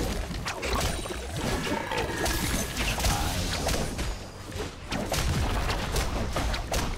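Magic blasts and weapon strikes crackle and clash in rapid bursts.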